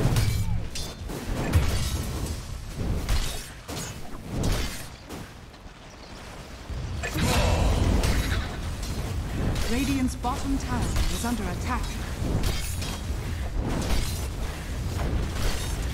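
Game spell effects and weapon hits clash and crackle in a fast battle.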